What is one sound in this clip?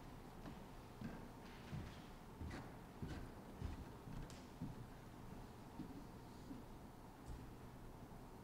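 Soft footsteps and light knocks sound nearby in a quiet hall.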